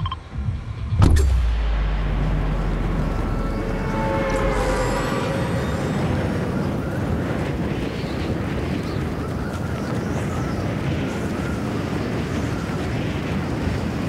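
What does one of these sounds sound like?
Wind rushes loudly and steadily.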